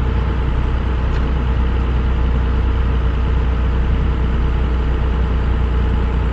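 A truck engine rumbles steadily as it drives along.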